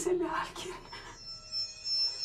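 A woman gasps in fright close by.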